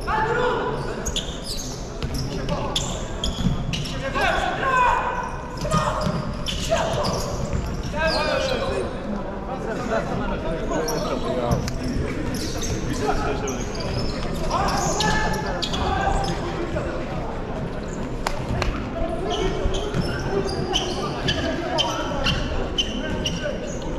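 A ball thuds against the floor and walls.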